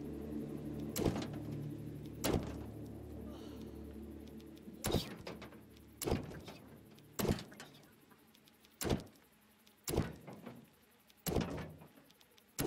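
Short menu clicks and chimes sound at intervals.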